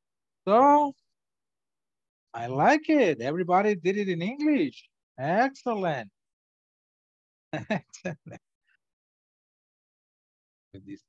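An older man speaks with animation over an online call.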